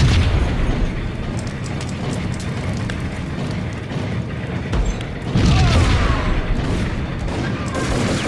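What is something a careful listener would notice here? A rifle fires short bursts.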